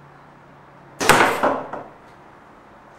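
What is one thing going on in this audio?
An arrow thuds into a foam target.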